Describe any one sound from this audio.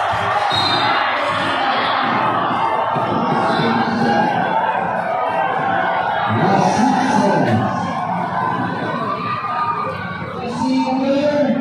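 A large crowd cheers and chatters loudly in a big echoing hall.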